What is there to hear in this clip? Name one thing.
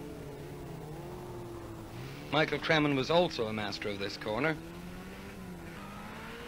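A rally car engine roars and revs hard as cars speed past.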